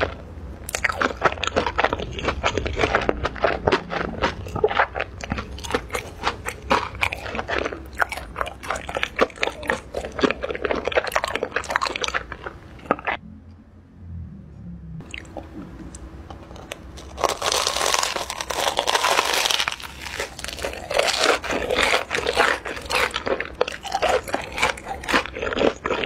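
A woman crunches and chews crispy fried food close to a microphone.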